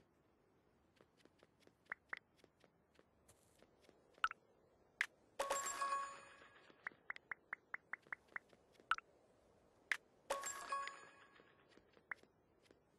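Short, crisp game clicks sound in quick runs.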